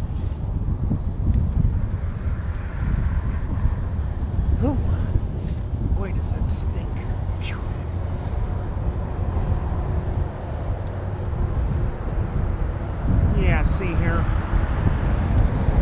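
Strong wind buffets and rumbles loudly, as if outdoors while riding.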